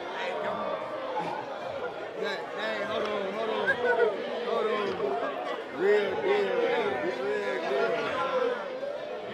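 Young men talk and laugh close by with animation.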